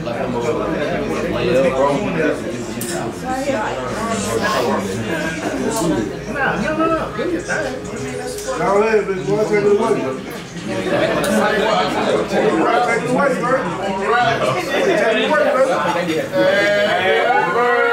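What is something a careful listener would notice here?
A young man speaks calmly to a group nearby.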